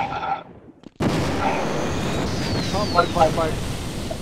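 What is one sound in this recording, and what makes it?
An energy weapon crackles and hums as it fires.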